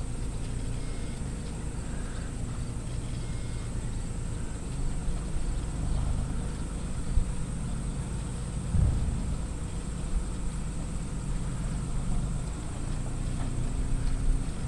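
A horse's hooves thud softly on sand at a trot.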